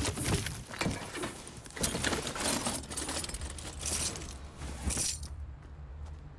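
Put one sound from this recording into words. A pickaxe strikes wood with loud, repeated whacks.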